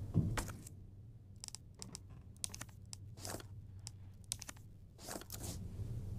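Menu clicks tick several times.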